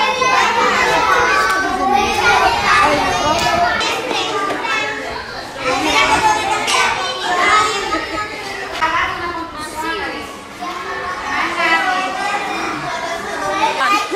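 Young children chatter and shout excitedly nearby.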